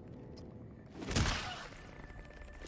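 A gun fires a loud blast.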